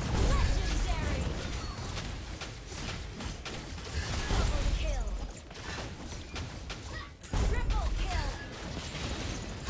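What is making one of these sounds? Game spell effects and hits crackle and boom in quick bursts.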